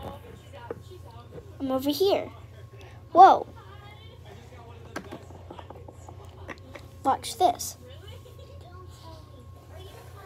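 A small plastic toy taps lightly as it is set down on a table.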